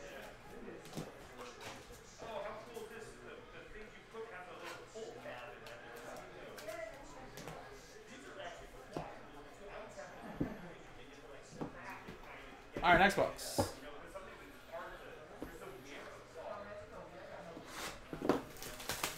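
Cardboard packs and plastic-wrapped cards rustle and tap on a table.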